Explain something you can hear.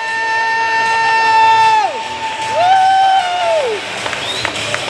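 A young man yells loudly in long, drawn-out shouts nearby.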